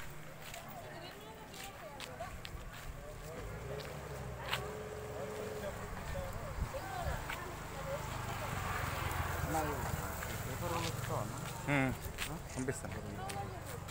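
A man talks a short distance away.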